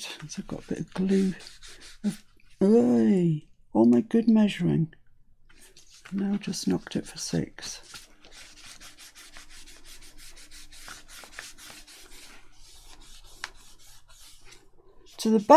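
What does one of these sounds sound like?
A tissue rubs over paper.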